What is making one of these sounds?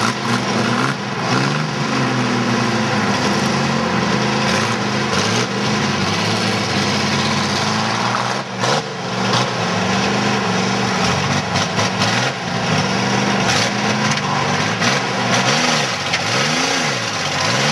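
Tyres screech and squeal as they spin on the ground.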